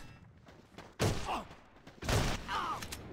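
A gun clicks and rattles as weapons are switched.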